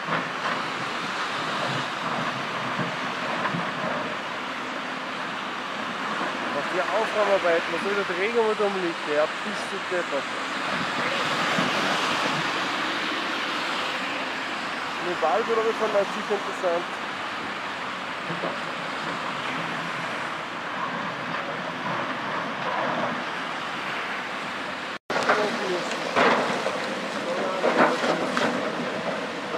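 A flooded river rushes and roars steadily.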